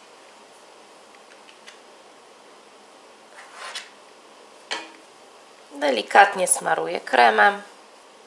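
A spatula scrapes frosting onto a cake.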